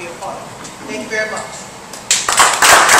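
A woman speaks into a microphone to a room.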